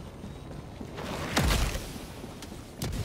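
An explosion booms nearby with a deep rumble.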